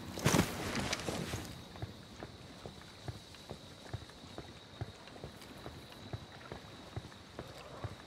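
Footsteps crunch steadily on stone paving.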